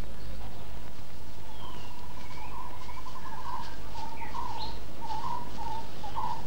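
Wind blows through tall grass outdoors.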